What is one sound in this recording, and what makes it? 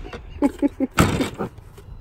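A plastic lid knocks against a plastic crate.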